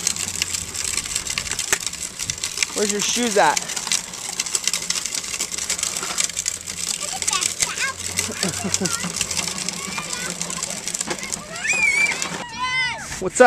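Plastic wheels rumble and rattle over concrete.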